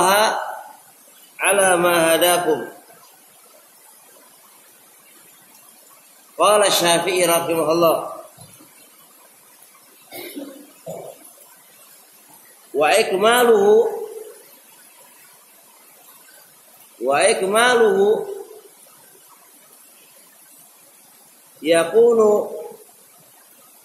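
A man chants loudly in short sung phrases close to a microphone, with pauses between them.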